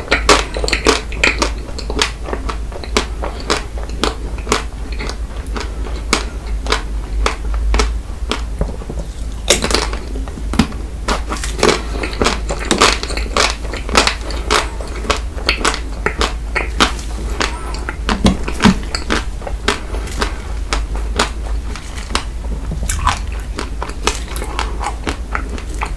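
A man bites and chews a crunchy chocolate-coated ice cream bar close to a microphone.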